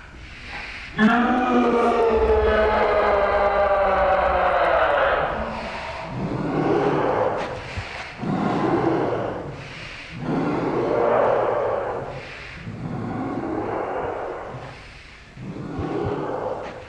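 A young woman screams and wails loudly nearby.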